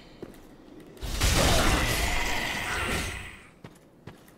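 A blade slashes hard with a heavy hit.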